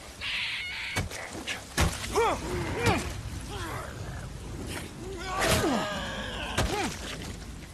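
Heavy blows thud as a man is struck with a club.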